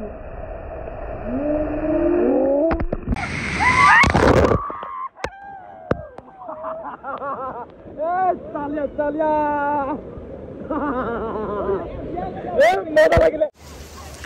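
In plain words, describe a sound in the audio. A young man shouts and laughs close by.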